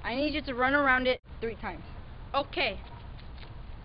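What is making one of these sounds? A boy speaks with animation close by, outdoors.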